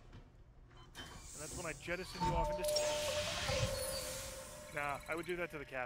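A machine whirs and hisses as a seat swings round.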